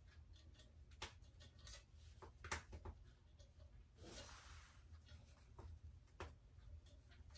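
Metal bars clink and tap lightly on a stone table.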